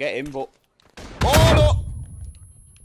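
Rifle shots crack and echo.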